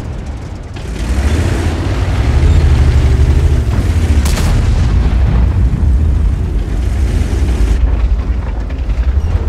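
A heavy tank engine rumbles and roars steadily.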